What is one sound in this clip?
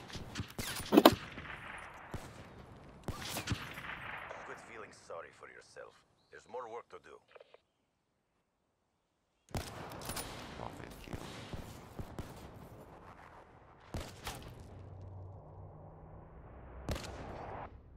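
A sniper rifle fires with a loud crack and echo.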